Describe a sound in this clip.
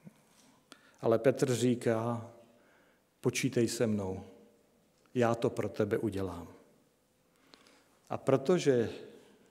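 A middle-aged man speaks slowly and deliberately into a microphone, pausing between phrases.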